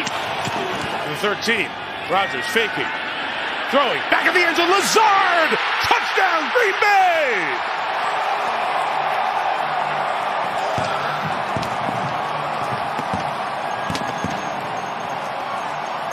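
A large crowd cheers and roars in a big open stadium.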